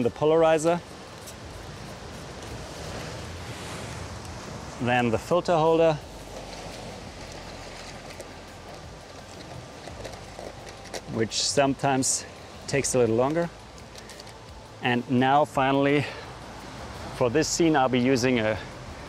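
A man speaks calmly in short bursts outdoors, close by.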